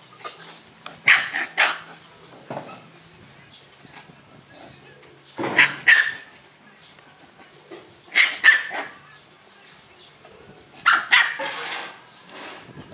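Puppies yip and growl as they play close by.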